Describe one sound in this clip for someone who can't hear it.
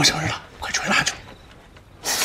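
A young man speaks urgently, up close.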